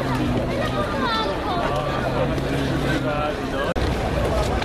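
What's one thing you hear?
A large outdoor crowd murmurs and chatters.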